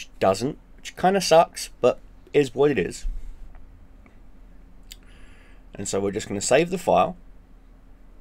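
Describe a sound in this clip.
A man talks calmly and close into a microphone.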